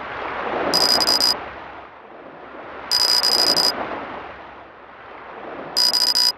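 Rapid electronic blips chirp in short bursts.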